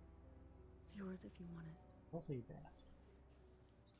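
A man speaks softly in a low voice.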